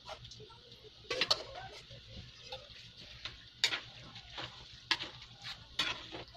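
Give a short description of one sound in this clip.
A spatula scrapes and stirs pasta in a metal wok.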